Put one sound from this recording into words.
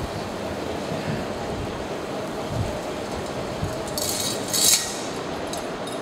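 Metal censer chains clink.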